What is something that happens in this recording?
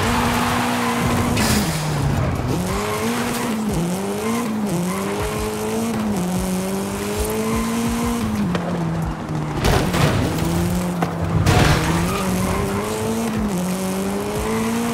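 A car engine revs hard, rising and dropping in pitch as the gears shift.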